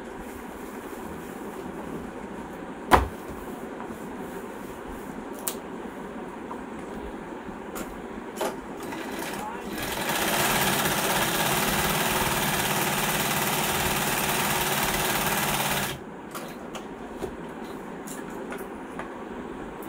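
Leather rustles and taps as it is handled.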